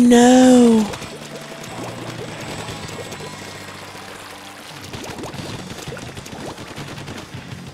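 Paint splatters with wet squelching bursts.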